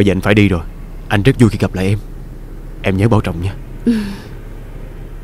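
A man speaks close by with strong emotion.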